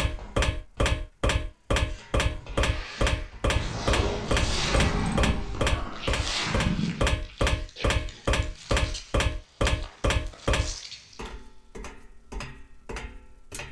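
Footsteps clang steadily on a metal walkway.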